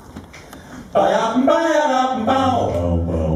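A group of men sings together in close harmony through microphones in a large hall.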